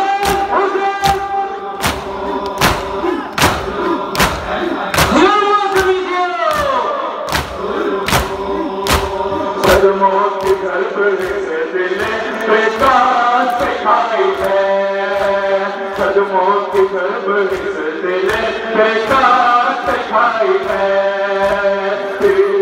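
A large crowd of men beats their chests in rhythm outdoors.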